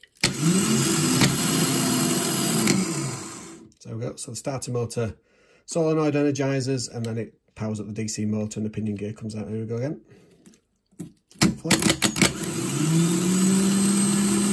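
An electric starter motor whirs loudly at high speed, spinning up and winding down.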